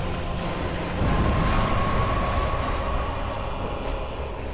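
A heavy magic blast roars and rumbles.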